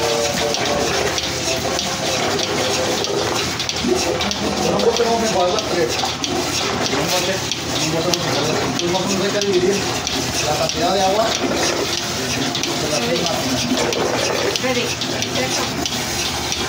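Metal clanks as a man handles a keg.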